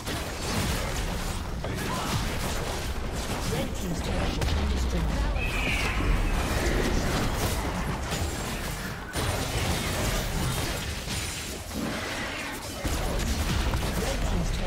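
Spell blasts, clashing weapons and explosions of a fantasy battle sound in quick succession.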